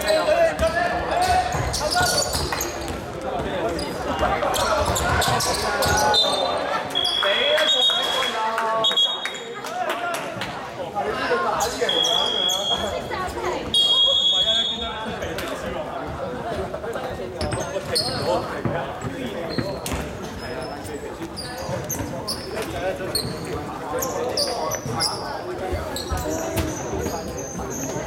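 Spectators chatter in an echoing hall.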